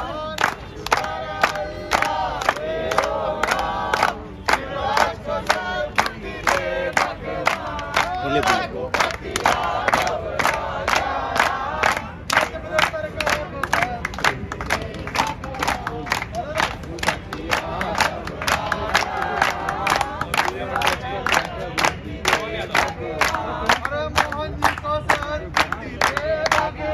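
A crowd of young men and women claps in a steady rhythm.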